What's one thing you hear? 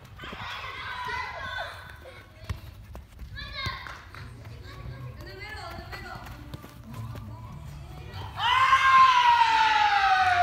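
A soccer ball thuds as children kick it.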